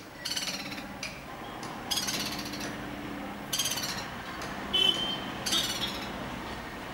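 A woodpecker gives loud, harsh rattling calls in short bursts.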